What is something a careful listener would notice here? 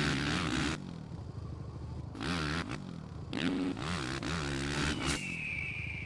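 A motorcycle engine revs and whines loudly, rising and falling in pitch.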